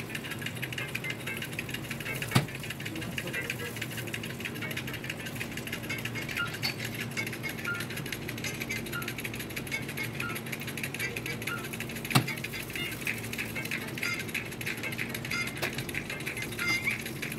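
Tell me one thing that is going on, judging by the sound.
An oven hums steadily.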